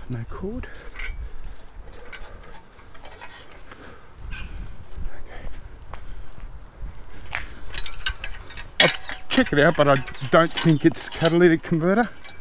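A metal exhaust part clanks softly as it is handled.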